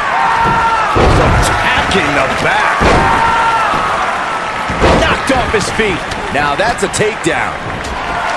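Bodies slam onto a wrestling ring mat with heavy thuds.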